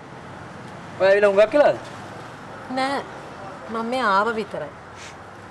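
A young woman speaks expressively close by.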